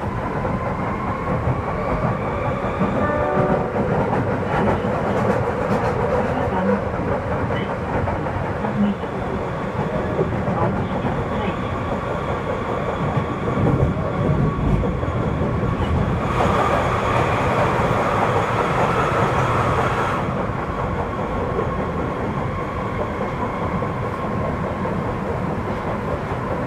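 A bus engine hums and rumbles steadily as the bus drives along.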